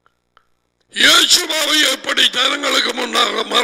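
A middle-aged man speaks with animation through a headset microphone.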